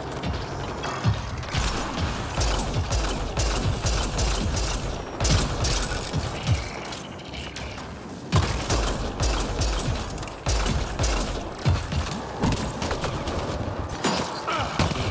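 Heavy explosions rumble throughout.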